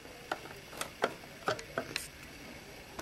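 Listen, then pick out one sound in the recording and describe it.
Small plastic pieces click softly as they are handled.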